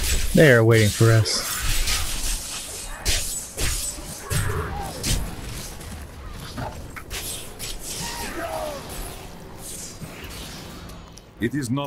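Magic blasts crackle and thud in a fast fight.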